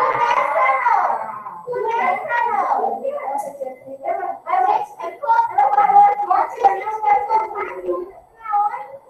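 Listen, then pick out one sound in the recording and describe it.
A woman speaks calmly and explains close to a microphone.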